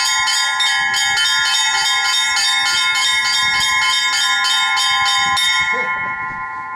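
Small bells chime rapidly in a quick, lively pattern.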